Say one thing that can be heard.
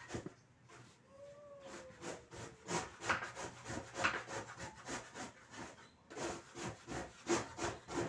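A trowel scrapes repeatedly across a hard floor.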